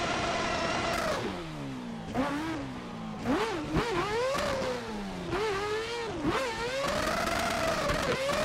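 Tyres screech as a car drifts through corners.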